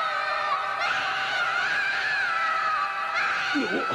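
A young boy wails and sobs loudly.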